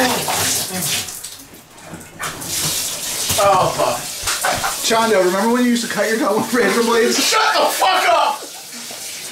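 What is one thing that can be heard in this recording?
Water from a shower sprays and splashes steadily.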